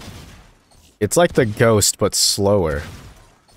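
A pistol fires sharp single shots.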